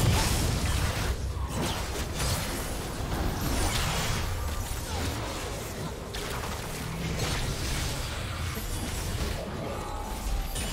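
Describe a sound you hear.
Magic blasts and sword strikes crackle and burst in a video game battle.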